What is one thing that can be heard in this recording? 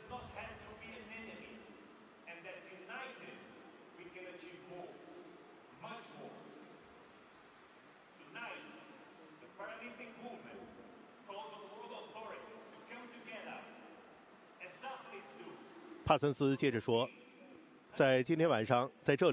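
A man speaks calmly into a microphone over a loudspeaker in a large echoing hall.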